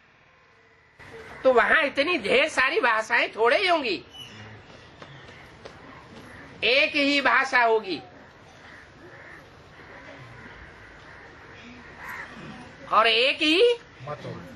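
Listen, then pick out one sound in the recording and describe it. An elderly man speaks calmly and close by, in bursts with pauses.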